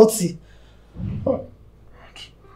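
A man speaks briefly in a low voice.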